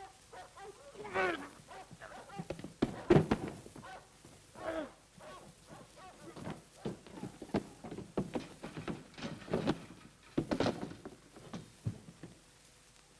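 Men scuffle, with thuds and shuffling feet.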